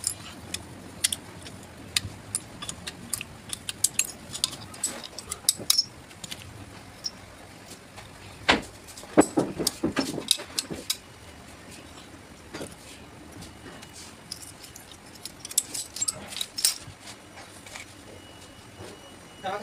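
Pliers grip and scrape on metal valve parts.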